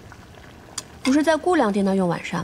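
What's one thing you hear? A young woman speaks softly, with a gentle, questioning tone.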